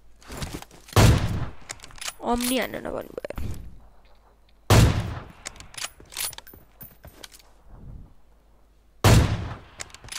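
A rifle fires sharp, loud single shots.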